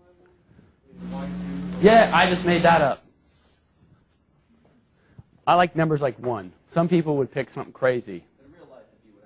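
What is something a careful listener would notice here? A man lectures calmly, close to a microphone, in short bursts.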